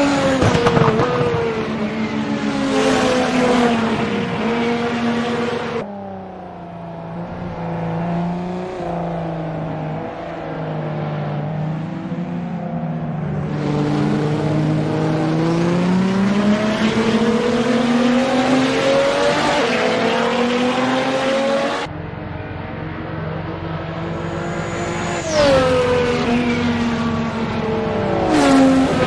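A race car engine revs and drones, rising and falling in pitch as the car speeds around a track.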